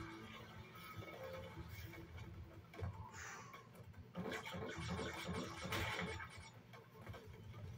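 Upbeat video game music plays through a small speaker.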